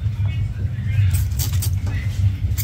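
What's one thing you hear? Nail clippers snip with sharp clicks.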